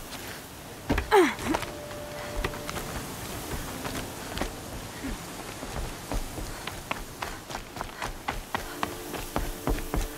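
Footsteps thud quickly on wooden planks and dirt.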